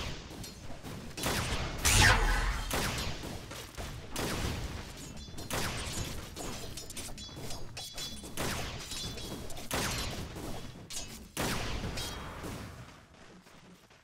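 Sharp magical blasts and hits crackle in a fast fight.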